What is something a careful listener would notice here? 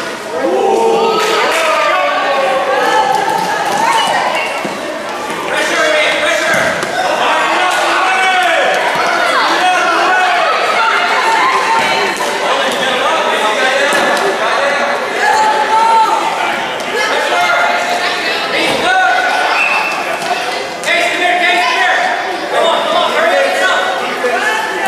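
Adults cheer and shout encouragement from nearby.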